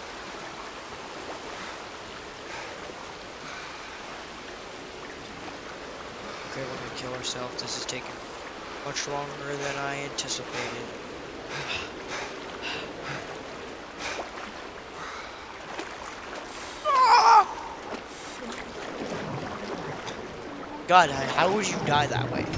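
Water splashes and sloshes as a swimmer strokes through it.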